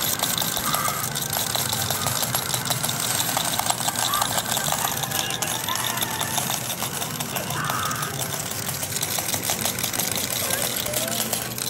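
Electronic game tones and jingles chime from an arcade machine.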